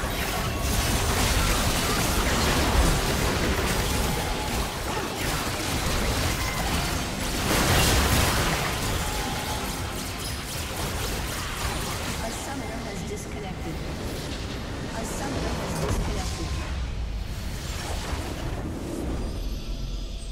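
Game spell effects crackle and boom in a busy battle.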